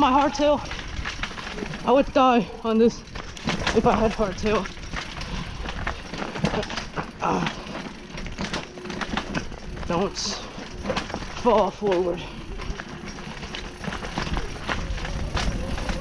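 Tyres knock and clatter over rocks.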